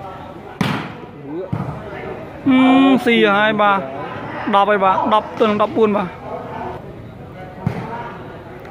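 A ball thuds off a player's body.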